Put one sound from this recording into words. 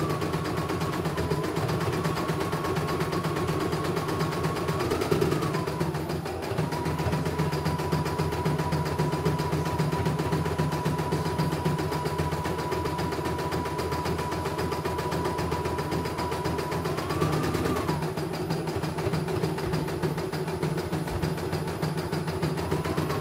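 An embroidery machine hums and stitches rapidly with a steady whirring rattle.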